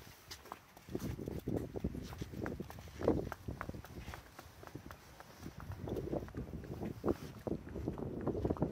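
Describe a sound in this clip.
Hooves clop on hard ground.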